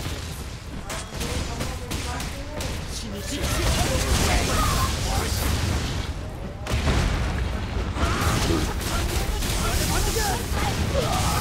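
Weapons slash and strike in quick, repeated blows.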